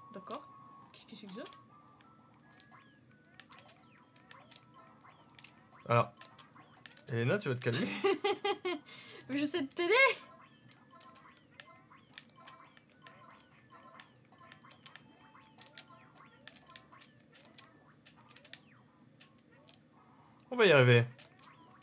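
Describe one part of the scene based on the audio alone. Cartoonish game sound effects chime, pop and tick.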